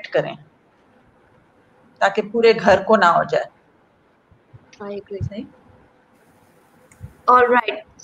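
A woman speaks in bursts over an online call.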